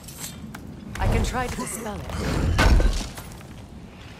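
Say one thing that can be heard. A heavy chest lid creaks open and thuds.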